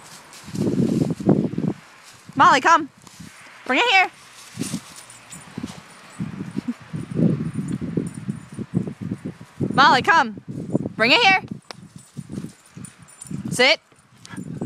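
A dog runs through dry fallen leaves, rustling them.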